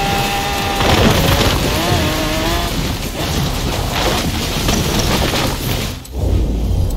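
Tyres crunch and rustle through bushes and rough ground.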